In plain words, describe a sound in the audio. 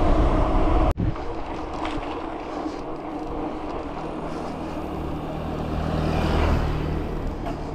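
Bicycle tyres rumble over cobblestones.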